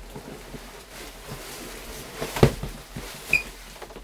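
Plastic packing material rustles and crinkles.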